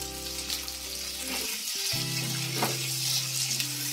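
A spatula scrapes and stirs food in a pan.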